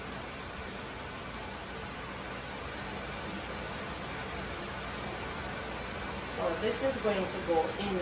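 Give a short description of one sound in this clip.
Chicken sizzles in a frying pan.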